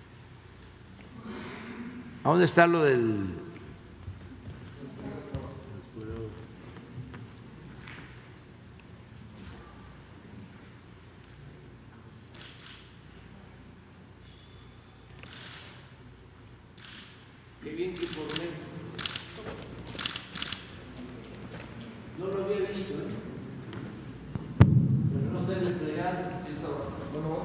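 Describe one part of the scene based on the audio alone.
An older man speaks.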